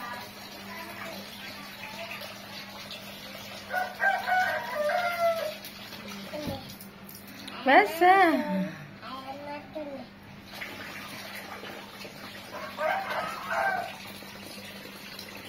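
Water from a hose splashes into a shallow pool.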